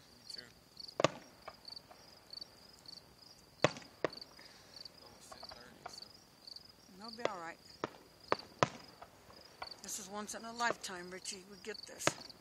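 Fireworks burst with sharp bangs.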